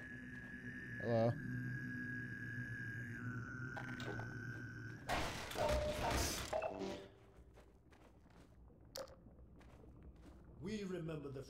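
A creature groans and moans with a rough, rising voice.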